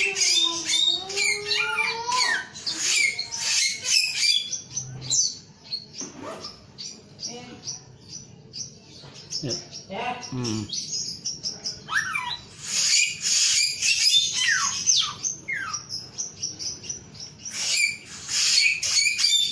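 A small songbird sings loud, rapid, chirping trills close by.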